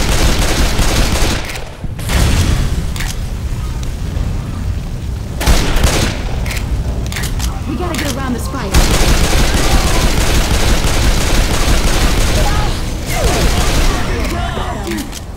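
Pistol shots ring out rapidly, with loud echoing bangs.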